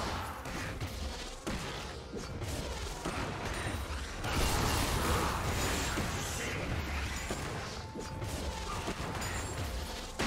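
Swords clash and strike again and again.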